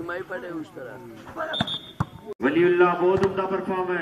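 A volleyball is struck with a sharp thump.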